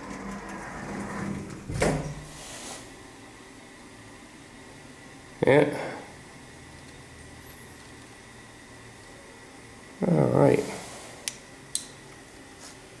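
An elevator hums as it moves.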